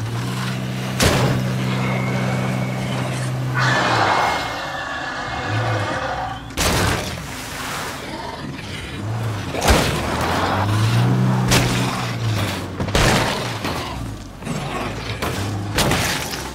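A car crashes into objects with loud thuds.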